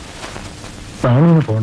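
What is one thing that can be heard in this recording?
A man speaks gruffly.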